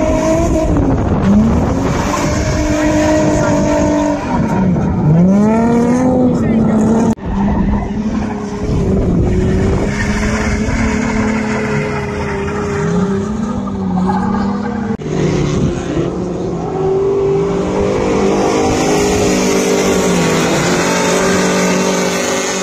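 A car engine revs hard, its pitch rising and falling.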